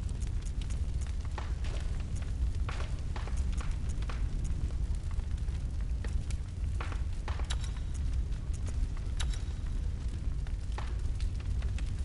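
Soft menu clicks sound as a selection moves.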